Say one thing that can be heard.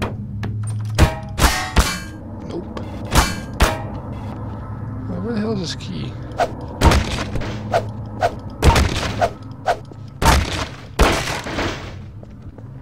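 A crowbar clangs against metal in sharp hits.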